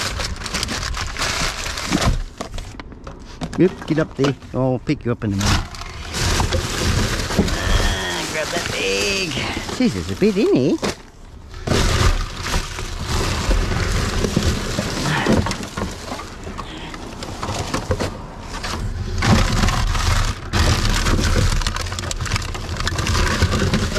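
Bottles and cans clink and rattle.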